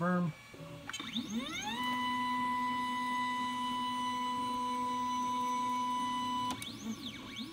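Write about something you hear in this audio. A printer hums with a steady whine.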